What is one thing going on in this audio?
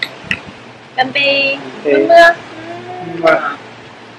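Glasses clink together in a toast.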